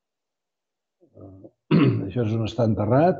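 An elderly man speaks calmly into a microphone, as if giving a lecture.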